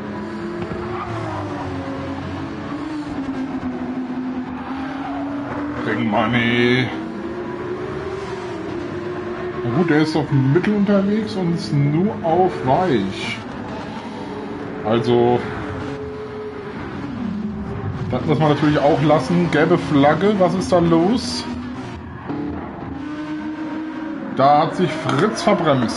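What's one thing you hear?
A racing car engine roars, revving up and down as gears shift.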